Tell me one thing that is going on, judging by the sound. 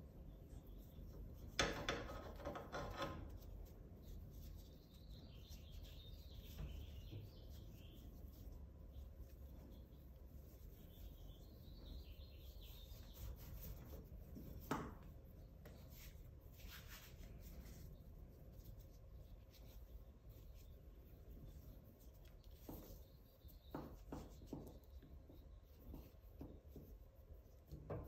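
Rope rustles and rubs softly as hands tie a knot.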